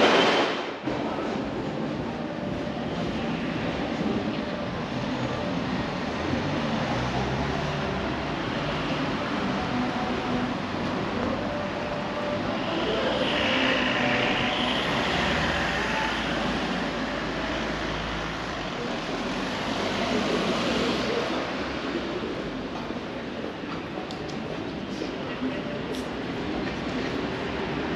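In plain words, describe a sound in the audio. Footsteps tap on paving stones nearby.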